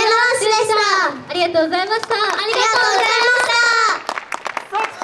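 Young women speak together into microphones over loudspeakers, with animation.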